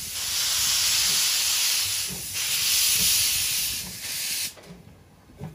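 A steam locomotive hisses loudly as it vents steam.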